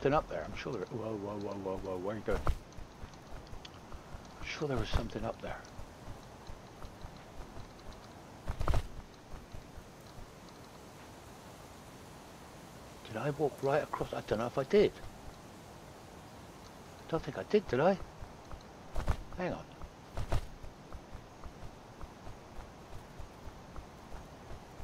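Footsteps tread softly on grass.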